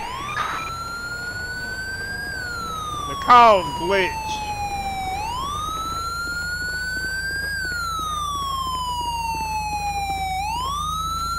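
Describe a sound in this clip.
A police siren wails, rising and falling steadily.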